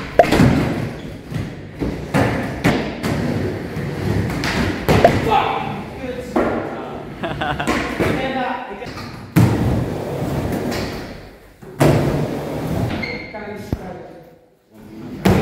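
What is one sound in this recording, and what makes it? A skateboard clatters and knocks against a wooden ramp.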